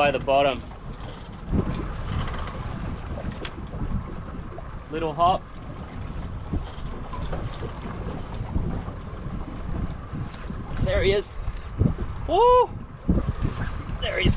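Wind rushes and water splashes against a boat.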